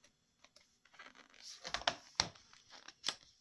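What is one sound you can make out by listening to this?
A book page rustles as it is turned.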